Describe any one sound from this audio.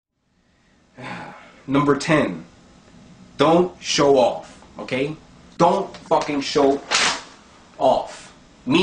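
A young man raps loudly and forcefully close by.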